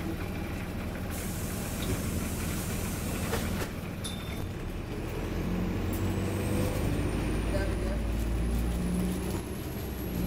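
A bus rattles and creaks as it rolls over the road.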